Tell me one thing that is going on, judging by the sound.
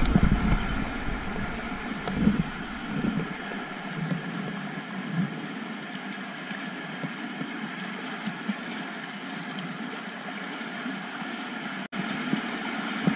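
White water rushes and roars over rocks close by.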